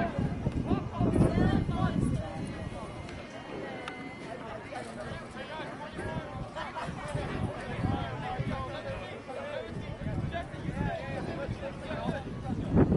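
Young men call out to each other across an open field, outdoors.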